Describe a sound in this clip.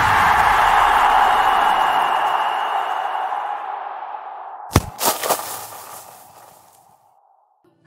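A stadium crowd cheers loudly and then fades.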